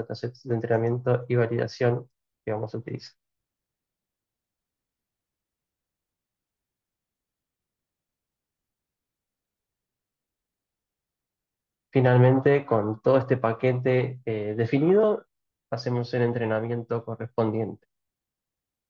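A man speaks calmly into a microphone, heard as if over an online call.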